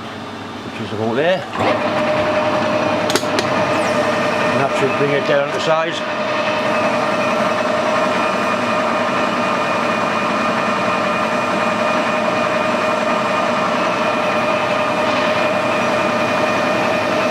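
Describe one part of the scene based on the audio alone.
A lathe motor spins up and then runs with a steady whine.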